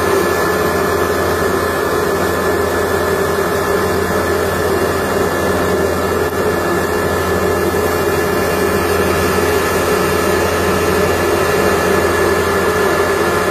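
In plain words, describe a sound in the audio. A grinding machine hums and rattles steadily as it runs.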